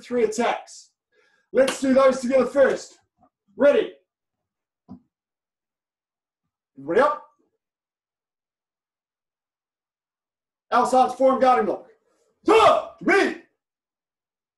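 A middle-aged man speaks calmly and clearly in short phrases.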